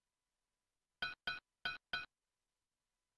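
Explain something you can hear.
Bright chiming blips ring out in quick succession as coins are picked up.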